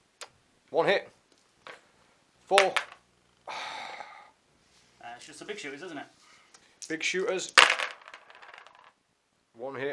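Dice clatter and rattle into a plastic bowl.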